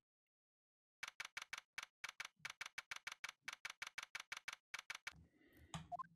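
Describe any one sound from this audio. Rapid beeps tick as text prints out.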